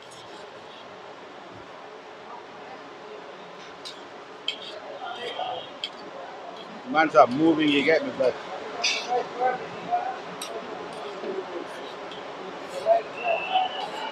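Flatbreads sizzle on a hot griddle.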